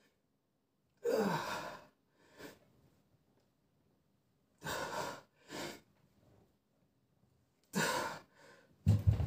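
A man breathes out hard with effort.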